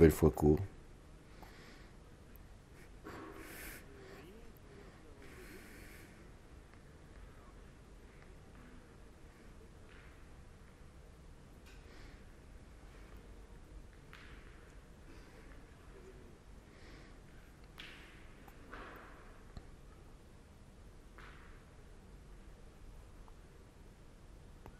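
A crowd of spectators murmurs softly in a large echoing hall.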